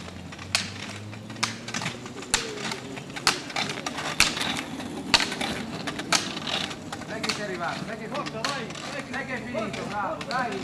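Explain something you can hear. Small wheels roll and hum on asphalt.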